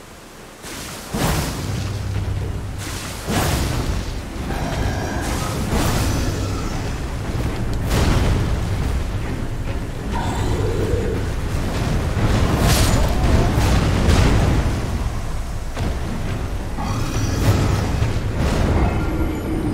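Metal weapons clang and strike.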